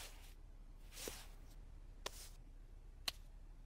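Food sizzles in a pan on a stove.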